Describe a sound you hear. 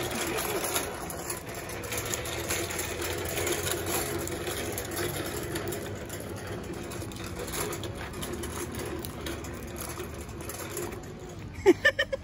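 Small plastic wagon wheels rumble and rattle over a pavement.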